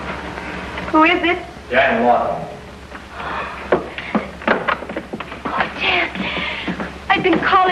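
A woman cries out and speaks in an agitated way.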